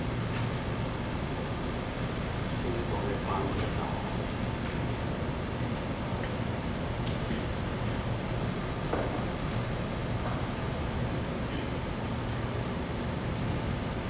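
A projector hums steadily.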